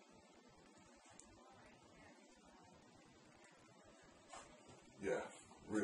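A metal bracelet clasp clicks as it is fastened.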